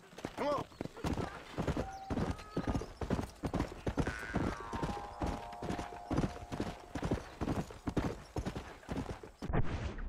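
Horse hooves gallop steadily over dry ground.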